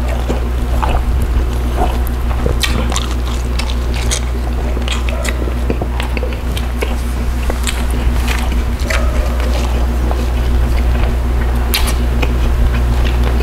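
Fingers tear and pick at soft fish flesh.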